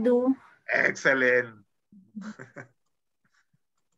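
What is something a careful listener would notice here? A young man laughs over an online call.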